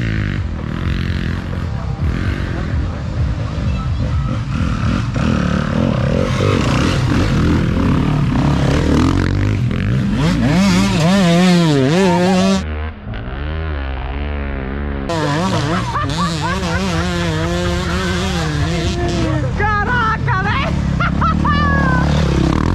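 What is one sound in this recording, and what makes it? Dirt bike engines rev and roar up a slope.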